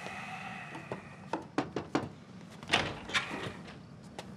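A glass door clicks and creaks open.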